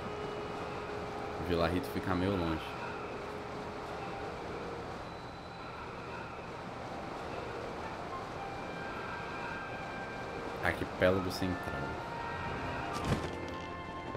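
Wind rushes steadily past during a long fall.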